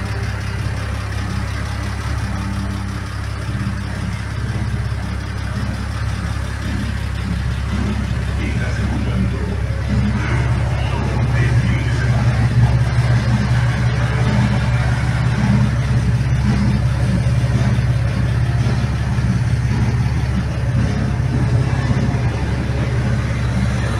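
A car engine idles with a steady low rumble, growing louder near the exhaust.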